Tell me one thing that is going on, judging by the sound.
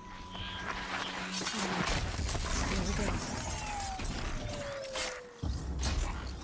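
A mechanical creature is struck and crashes heavily to the ground.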